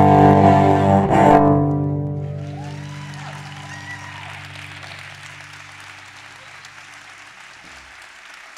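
A cello plays a loud, bowed chord that rings out and slowly fades.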